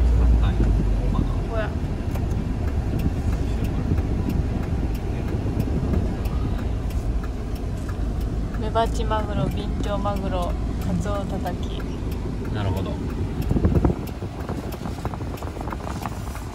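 A car engine hums steadily while driving slowly.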